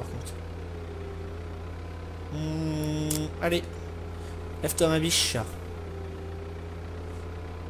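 An excavator engine idles with a low steady hum.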